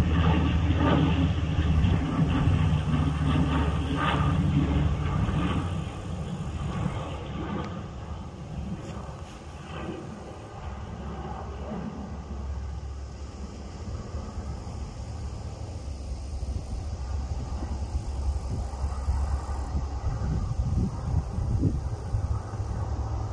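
A propeller plane drones overhead, loud at first and then fading a little.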